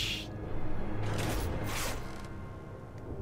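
A video game makes a soft whooshing sweep.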